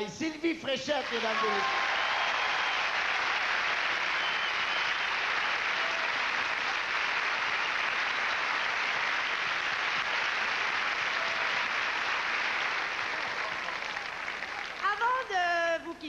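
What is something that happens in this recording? A large audience cheers and applauds loudly in a big hall.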